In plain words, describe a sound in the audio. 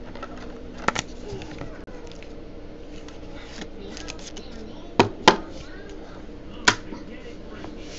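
Plastic card holders click and rustle as hands handle them.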